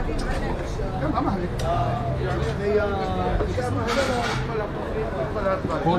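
Many people chatter at outdoor tables.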